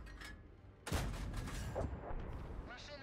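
A tank gun fires with a loud, booming blast.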